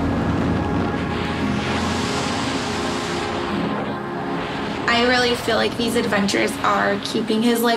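Wind roars loudly past.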